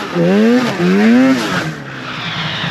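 A snowmobile thumps into deep snow.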